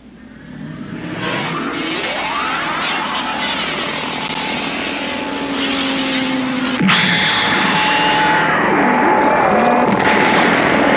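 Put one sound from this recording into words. An energy beam roars and hums steadily.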